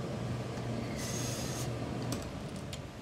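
A steam iron hisses briefly.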